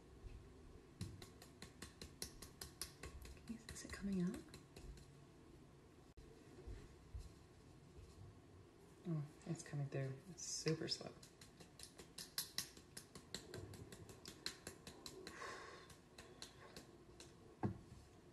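A whisk clatters rapidly against a bowl.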